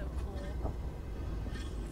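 Heavy footsteps crunch slowly on snow.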